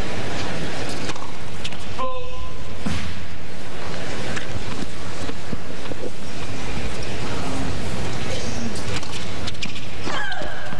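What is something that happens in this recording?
A tennis ball is struck hard with a racket, with sharp pops.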